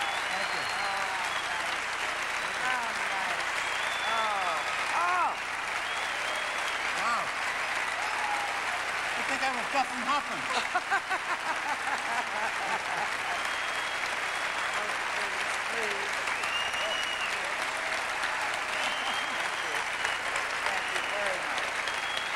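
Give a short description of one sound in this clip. An elderly woman speaks with animation into a microphone.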